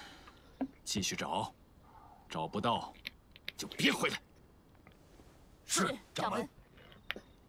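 A young man answers briefly with a raised voice.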